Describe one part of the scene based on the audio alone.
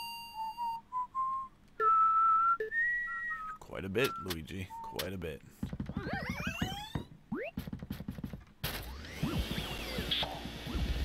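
Electronic game tones chime and whoosh.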